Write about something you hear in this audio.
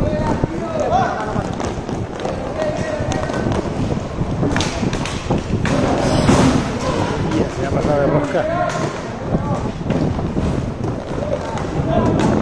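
Plastic wheels of inline skates roll and scrape on a hard sports floor.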